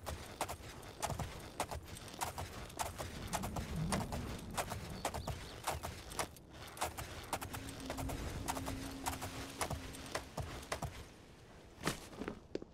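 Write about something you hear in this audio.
Horse hooves thud steadily along a dirt path.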